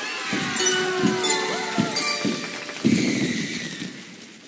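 Cartoon fireworks burst with soft pops.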